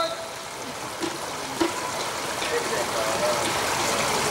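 Swimmers splash into the water.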